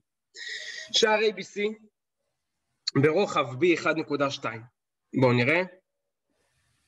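A man speaks calmly through a microphone on an online call, explaining in short phrases.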